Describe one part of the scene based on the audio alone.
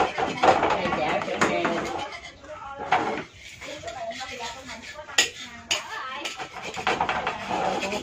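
A metal spatula scrapes against a frying pan.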